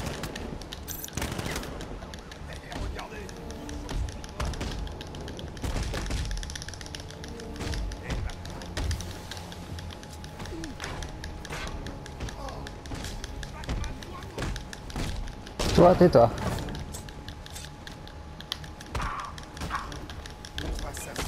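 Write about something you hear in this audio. Electric batons crackle and zap.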